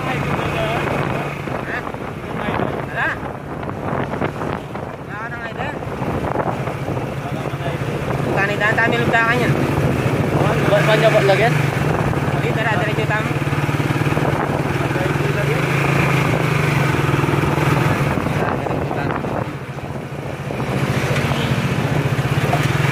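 A motor taxi's engine hums and rattles steadily from close by.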